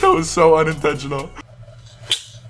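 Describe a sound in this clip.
A young man talks with animation through a microphone.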